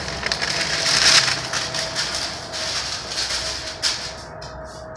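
A sheet of paper rustles and flaps.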